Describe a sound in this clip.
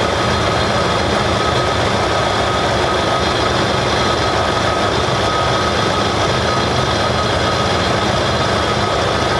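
Liquid glugs and splashes as it pours steadily from a plastic jug.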